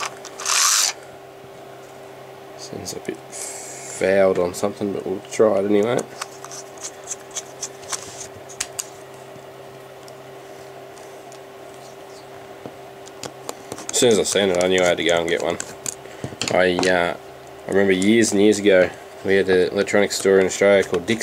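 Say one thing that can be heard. Small hand tools clink and rattle as they are picked up and handled.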